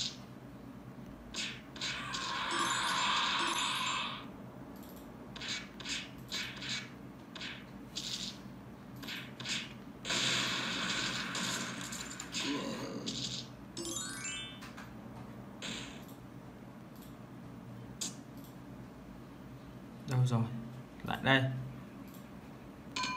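Game sound effects of punches and blows play from a tablet's speaker.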